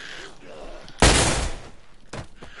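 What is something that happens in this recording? A single loud gunshot rings out.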